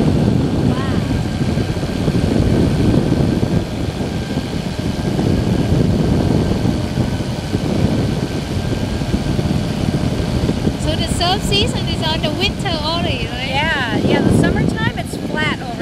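A small aircraft engine drones steadily close by.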